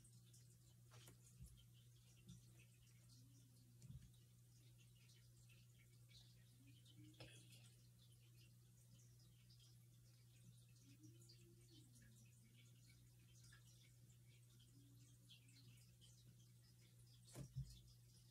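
Small objects tap lightly on a wooden table.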